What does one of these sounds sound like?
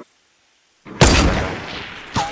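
A rifle fires a single loud shot with a ringing echo.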